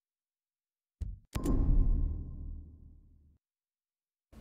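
A low game sound swells and fades as a task completes.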